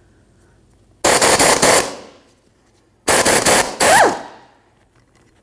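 An air hammer rattles loudly in two short bursts.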